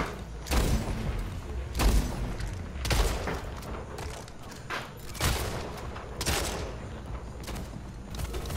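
Gunshots fire in loud, sharp bursts from a rifle.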